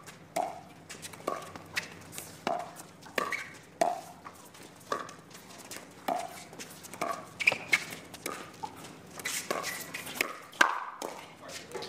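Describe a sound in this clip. Paddles hit a plastic ball back and forth in quick, sharp pops.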